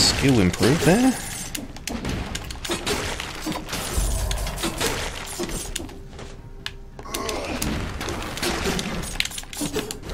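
Blades slash and strike enemies with sharp hits and bursts.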